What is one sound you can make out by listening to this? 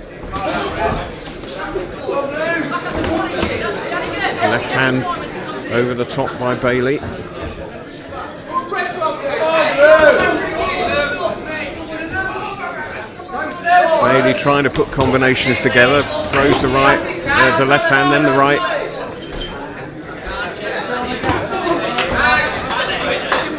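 A crowd of men and women shouts and cheers loudly in an echoing hall.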